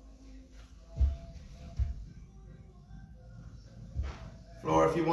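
Sneakers thump and squeak on a rubber floor.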